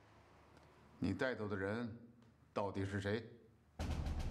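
An older man asks questions sternly.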